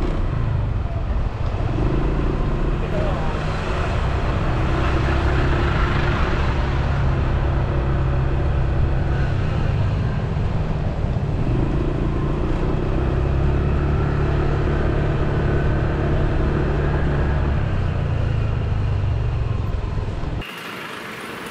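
A vehicle engine and road noise rumble steadily while driving.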